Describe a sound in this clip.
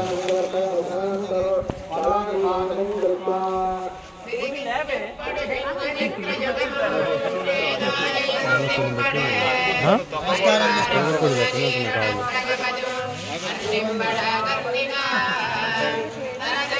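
A crowd of men and women talk over one another close by.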